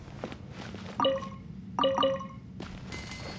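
A chest bursts open with bright chiming tones.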